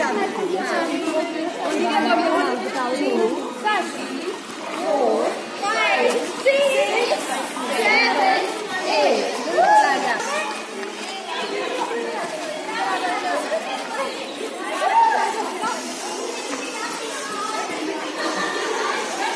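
A crowd of teenagers chatter and shout together outdoors.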